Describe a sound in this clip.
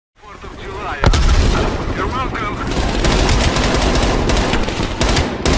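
A rifle fires rapid bursts of shots, close by.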